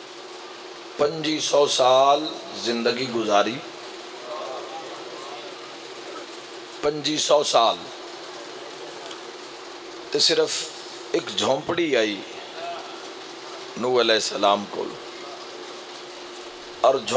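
A young man speaks passionately into a microphone over loudspeakers, in bursts with pauses.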